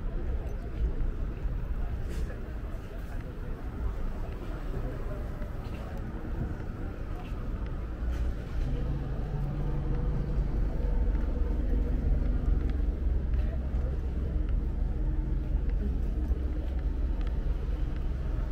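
Footsteps tap on the pavement close by.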